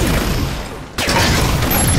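Gunfire rattles in rapid bursts.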